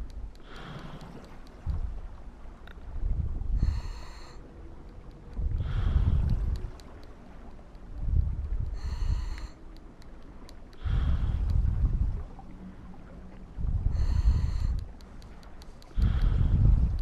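A diver breathes slowly through a regulator underwater.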